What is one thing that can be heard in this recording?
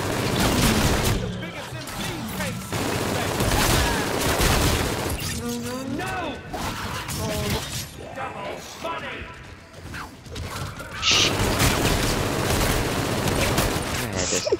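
A weapon clicks as it is reloaded.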